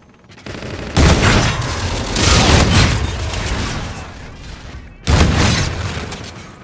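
Guns fire in loud, rapid bursts.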